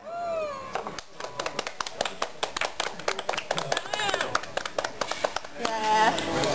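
Hands clap quickly and repeatedly.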